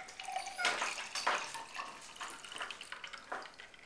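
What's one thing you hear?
Liquid pours into a glass.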